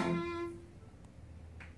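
A fiddle plays a note that rings out and fades.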